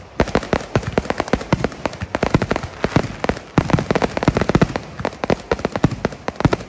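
Fireworks crackle and bang in rapid bursts, close by outdoors.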